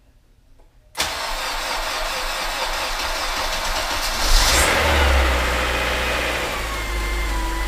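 A car engine starts up with a loud roar nearby.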